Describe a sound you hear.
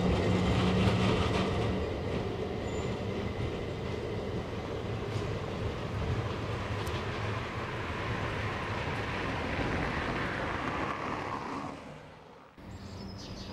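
A tram rumbles along its rails, moving away and slowly fading.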